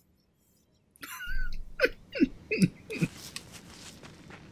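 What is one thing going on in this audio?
Footsteps run over grass.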